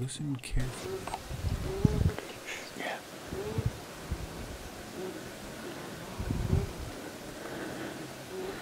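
A beaver whines with short, high squeaks again and again.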